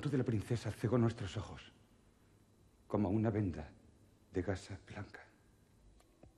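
An older man speaks in a deep, grave voice close by.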